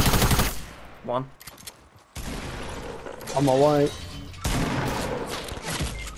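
A gun fires in sharp bursts of shots.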